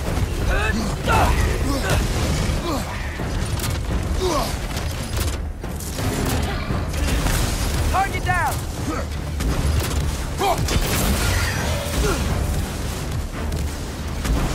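Large monsters growl and roar.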